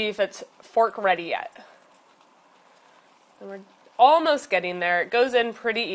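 A fork scrapes and taps against meat in a heavy pot.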